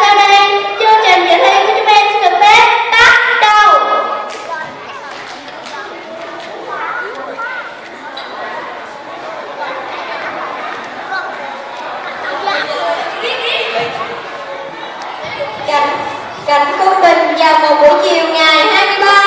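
Children sing together loudly through loudspeakers.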